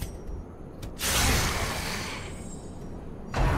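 A blade slashes through the air with a heavy whoosh.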